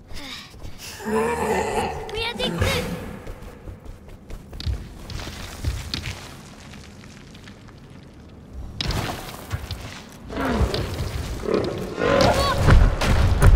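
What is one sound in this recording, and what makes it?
A large creature lets out warbling, whining cries.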